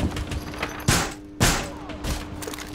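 Wood splinters and cracks loudly.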